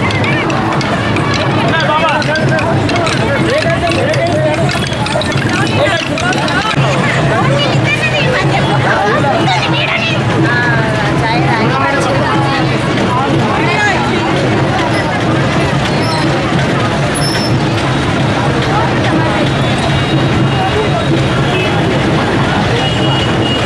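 A crowd of women and children chatters and calls out outdoors.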